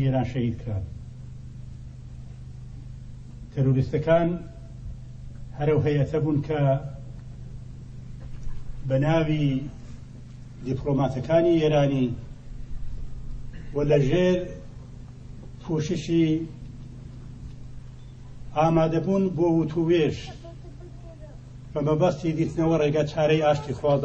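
A man speaks forcefully into a microphone, in short bursts with pauses between them.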